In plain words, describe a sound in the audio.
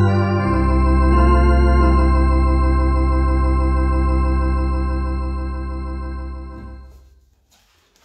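An electronic organ holds a loud, sustained chord that fades out.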